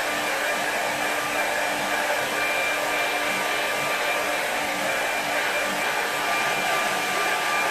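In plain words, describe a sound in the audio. A hair dryer blows with a steady, loud whir close by.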